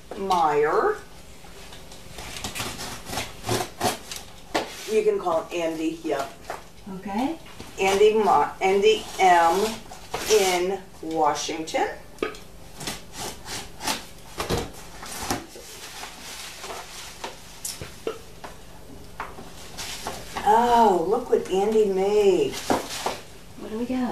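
Cardboard and packing rustle and thump as a box is handled.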